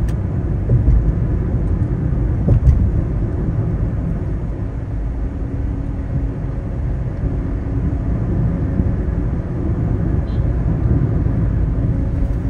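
Tyres roll on smooth pavement with a low, steady rumble.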